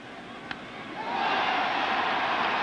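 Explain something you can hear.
A large crowd cheers loudly, swelling up.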